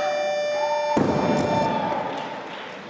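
A barbell drops onto the platform with a heavy thud.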